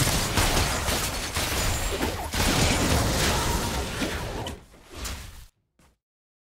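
Game spells and attacks clash and crackle in a fight.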